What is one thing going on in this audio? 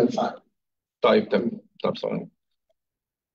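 A man speaks into a microphone in a room, heard through an online call.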